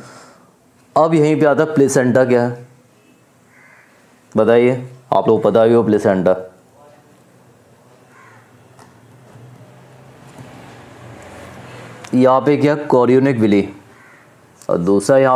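A man speaks calmly and clearly nearby, as if teaching, in short bursts with pauses.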